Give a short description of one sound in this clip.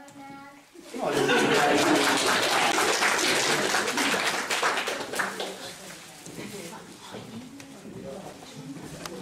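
An audience claps loudly, with applause that slowly fades.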